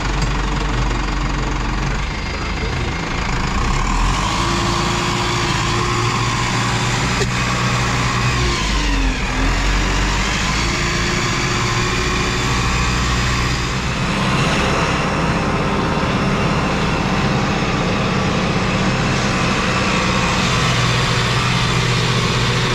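A tractor creaks and rattles over rough ground.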